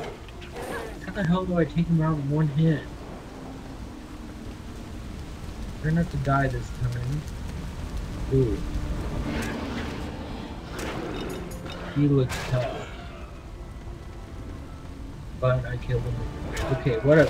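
A young man talks calmly into a microphone, close by.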